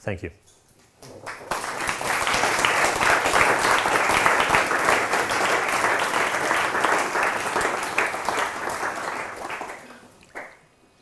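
An audience applauds loudly in a hall, then the clapping fades.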